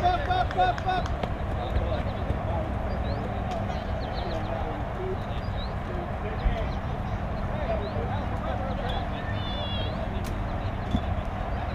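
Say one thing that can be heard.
Girls call out across an open field some distance away.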